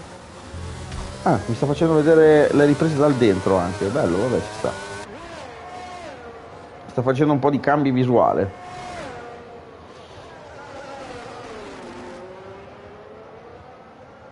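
A racing car engine whines and revs up and down.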